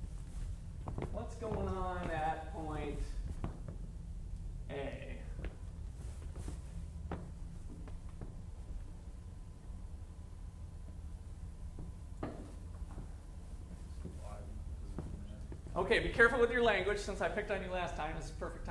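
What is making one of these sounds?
A man speaks from across the room, in bursts.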